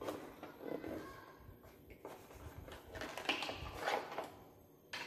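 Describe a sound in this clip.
Cardboard and paper rustle as a box is unpacked close by.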